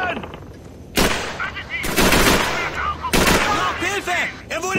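A submachine gun fires loud, short bursts.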